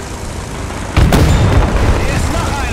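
A tank cannon fires with a heavy boom.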